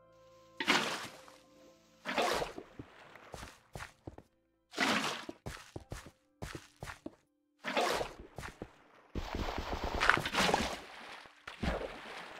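Water splashes as a bucket is filled and poured out.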